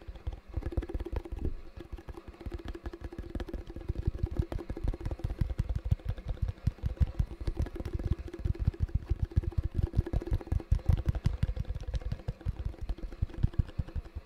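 Fingers tap and scratch rapidly on a plastic lid close to a microphone.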